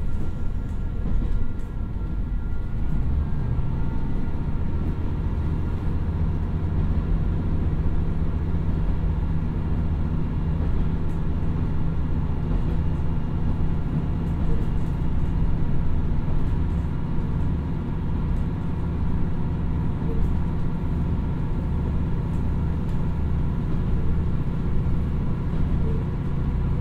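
A diesel railcar engine rumbles steadily.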